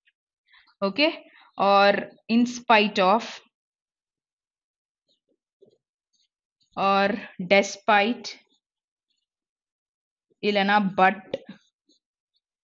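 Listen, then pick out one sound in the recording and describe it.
A woman speaks calmly and clearly, close to a microphone, in short phrases with pauses.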